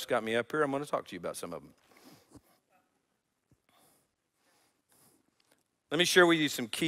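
An older man speaks calmly through a microphone, pausing between phrases.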